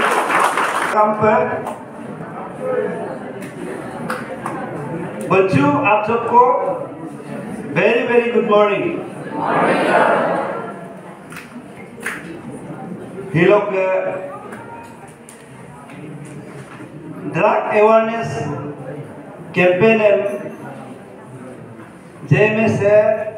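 A man speaks calmly into a microphone over a loudspeaker in an echoing hall.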